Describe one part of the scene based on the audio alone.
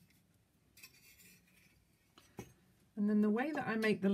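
A metal cookie cutter is set down on a cloth-covered table.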